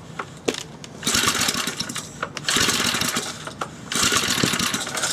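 A small petrol engine cranks over in short raspy bursts without starting.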